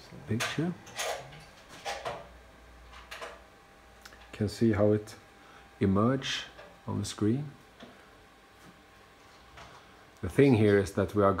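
A man talks close by, in short bursts with pauses.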